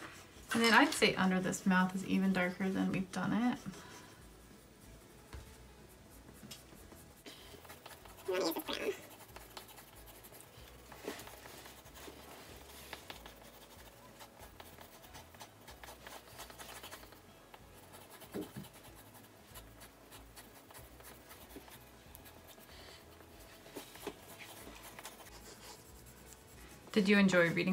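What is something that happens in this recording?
Coloured pencils scratch softly on paper.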